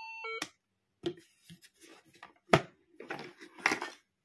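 Hands tap and rub against a plastic toy.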